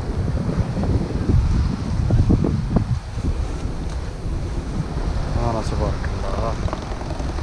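Water laps and splashes nearby.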